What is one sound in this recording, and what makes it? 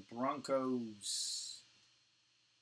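A plastic card sleeve rustles briefly.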